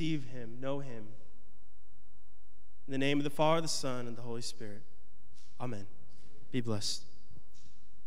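A man speaks over a microphone in a large hall.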